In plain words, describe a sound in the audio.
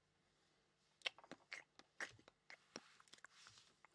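Small items click and tap against each other.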